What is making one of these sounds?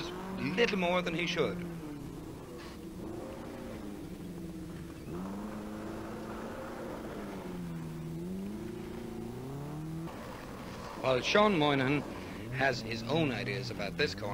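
Tyres crunch and spray loose gravel.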